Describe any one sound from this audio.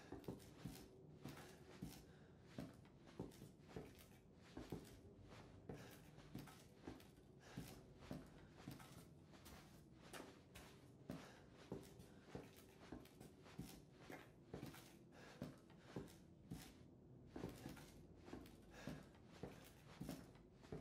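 Slow, regular footsteps creak and thud on wooden floorboards.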